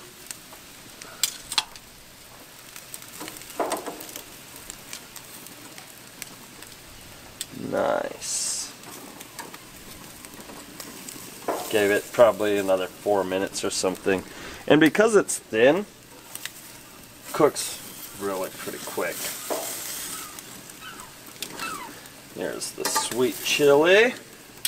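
Metal tongs clack against a grill grate.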